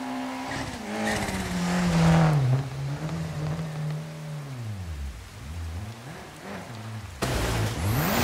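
A rally car engine roars past and fades into the distance.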